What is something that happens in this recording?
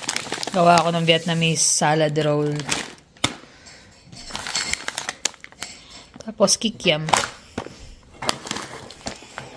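Plastic packaging crinkles and rustles as hands handle it.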